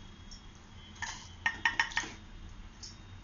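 Cauliflower pieces plop and splash into a pot of water.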